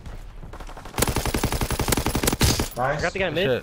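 Rapid gunfire rattles in a quick burst.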